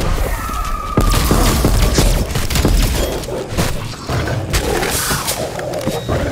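A futuristic gun fires in rapid bursts.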